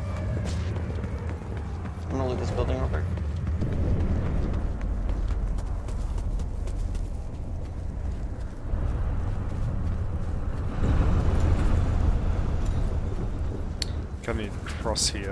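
Footsteps brush and crunch through grass and undergrowth.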